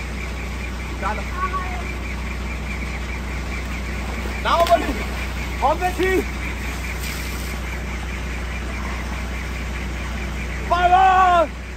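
Young men shout and call out playfully outdoors.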